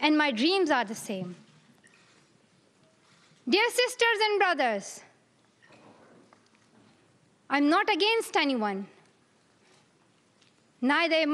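A girl speaks slowly and clearly into a microphone, with pauses between phrases.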